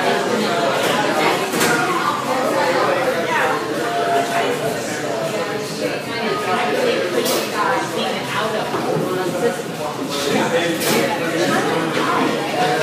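A crowd of men and women chatter all around in a busy room.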